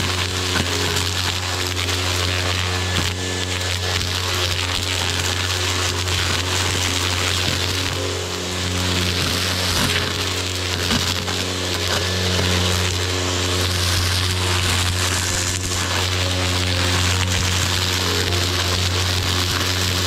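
A string trimmer's engine whines steadily up close.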